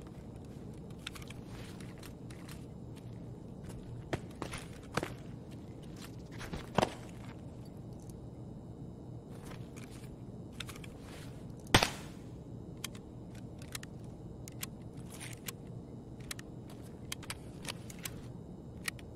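Game inventory items click and shuffle as they are moved.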